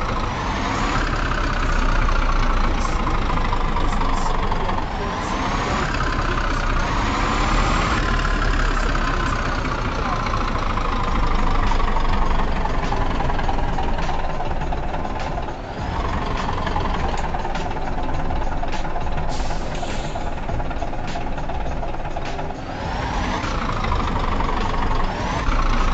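A semi truck's diesel engine revs up and drops as it drives.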